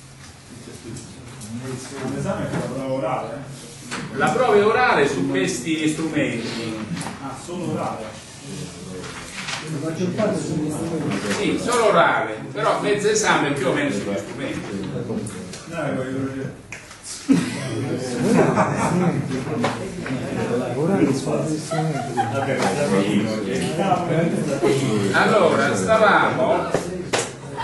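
An elderly man lectures calmly.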